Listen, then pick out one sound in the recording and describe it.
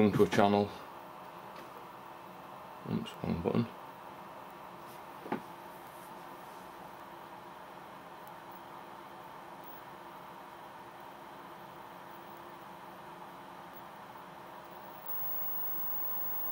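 A television hisses with steady static.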